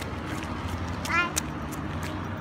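A young child squeals with excitement nearby.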